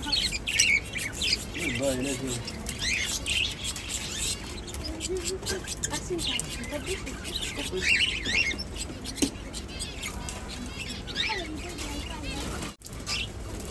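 Small birds chirp and squawk close by.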